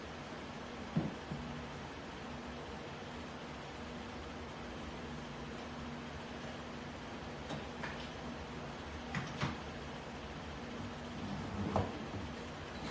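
Objects knock and thud as they are set down.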